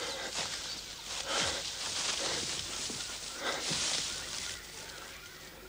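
Dry leaves and branches rustle as a man pushes through undergrowth.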